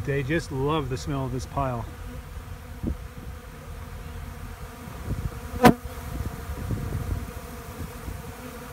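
Many flies buzz softly close by.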